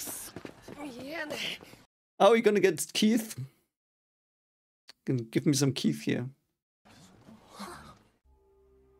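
A young man speaks close to a microphone.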